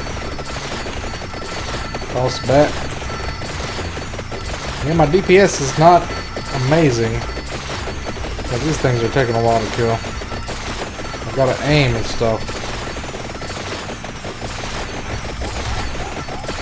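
Rapid video game sound effects crackle and chime throughout.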